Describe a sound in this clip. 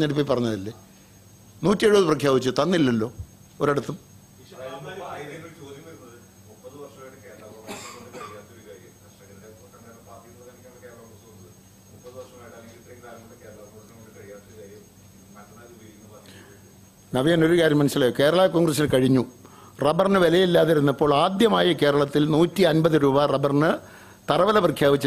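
A middle-aged man speaks steadily into microphones.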